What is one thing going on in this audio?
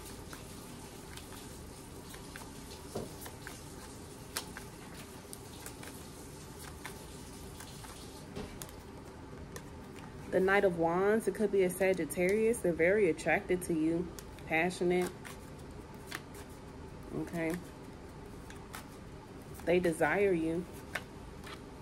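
Playing cards riffle and slap softly as they are shuffled.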